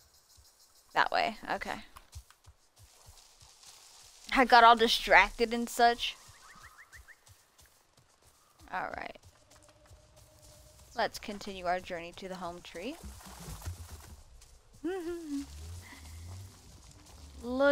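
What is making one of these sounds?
Footsteps rustle through grass and undergrowth.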